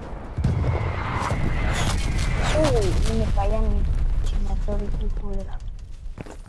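Footsteps thud quickly on sand.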